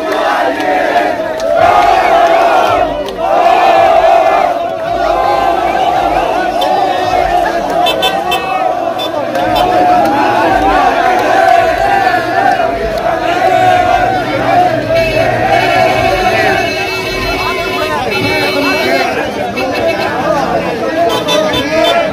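A large crowd of young men chants and cheers loudly outdoors.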